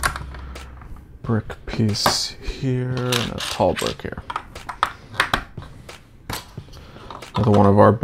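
Plastic toy bricks click and clatter as they are pressed together.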